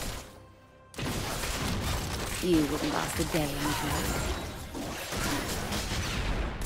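Video game spell blasts and weapon hits clash in a busy battle.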